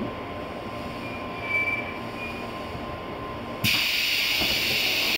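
A train engine hums low and steady close by.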